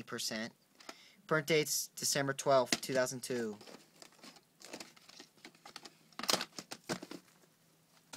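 Hands rustle and tap a plastic case.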